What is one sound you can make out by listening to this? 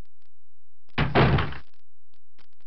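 A heavy door creaks open and thuds.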